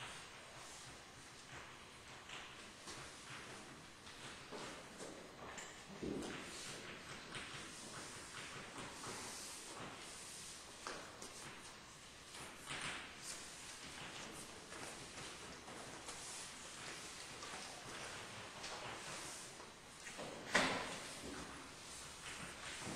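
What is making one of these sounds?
A man speaks at a distance in a large echoing hall.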